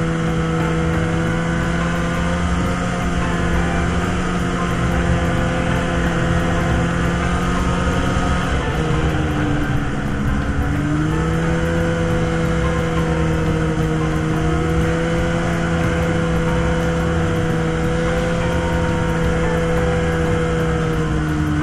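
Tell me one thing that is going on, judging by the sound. A two-stroke snowmobile engine drones while cruising along a snowy trail.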